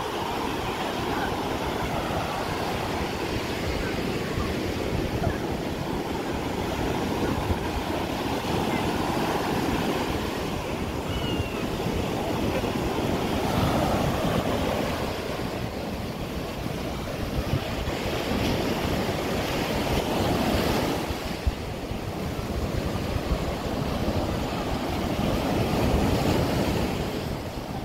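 Waves break and wash onto the shore in a steady rushing surge.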